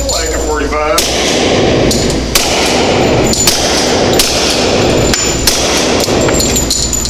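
A suppressed pistol fires several muffled shots with a sharp crack.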